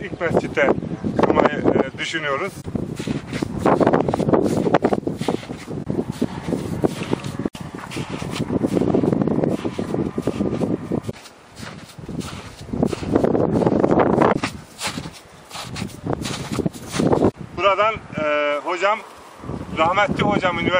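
A man speaks close by, outdoors.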